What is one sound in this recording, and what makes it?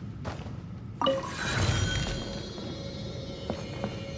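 A bright magical chime rings out with a shimmering tone.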